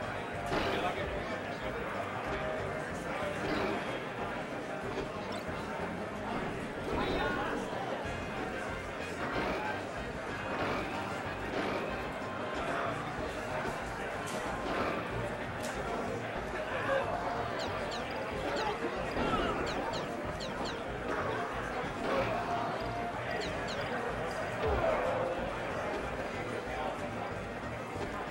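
Young men talk and react excitedly close by.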